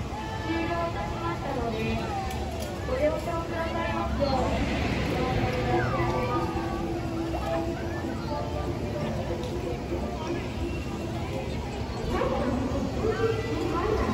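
A swing ride whirs and rumbles steadily.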